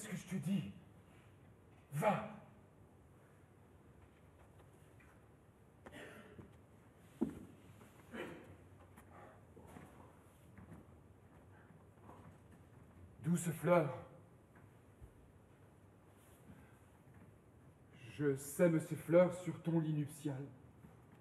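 A man speaks with emotion in short bursts.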